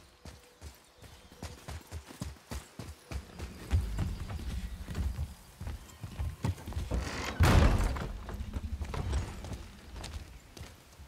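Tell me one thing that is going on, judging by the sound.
Heavy footsteps crunch on leaves and then thud on wooden boards.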